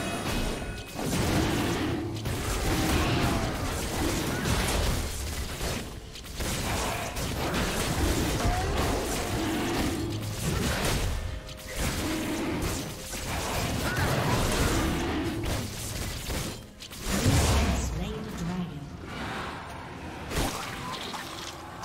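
Magic blasts and sword hits crackle and thud in a fight.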